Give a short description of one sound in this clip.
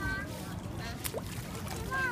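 A small object splashes into water.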